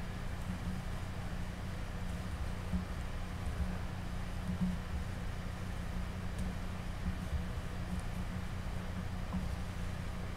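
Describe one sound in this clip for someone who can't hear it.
Fingers softly press and smooth soft clay close by.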